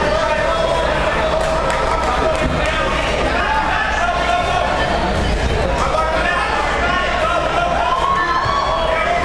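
A crowd shouts and cheers loudly nearby.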